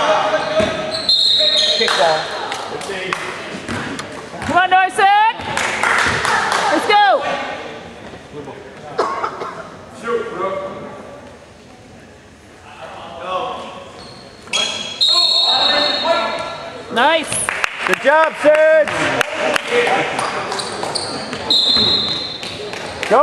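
A referee blows a whistle in short blasts.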